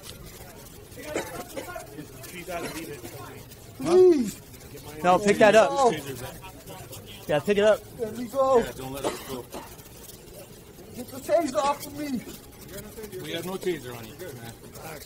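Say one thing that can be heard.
A man speaks firmly up close.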